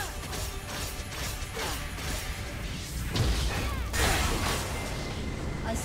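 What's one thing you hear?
Video game spells crackle and clash in a busy battle.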